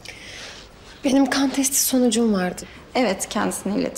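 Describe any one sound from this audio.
A young woman answers calmly and softly.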